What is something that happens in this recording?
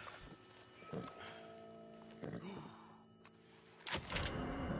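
A wounded horse groans and whinnies.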